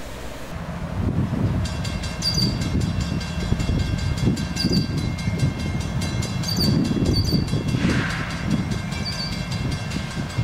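Steel wheels clatter over the rails.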